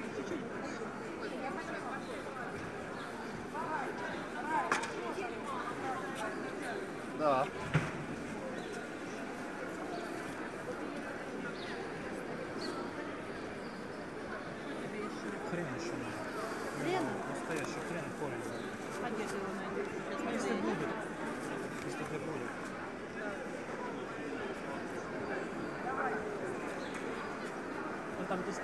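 Men and women talk and call out close by.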